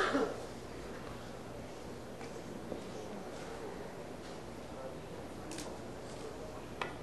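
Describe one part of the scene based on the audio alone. An audience murmurs quietly in a large hall.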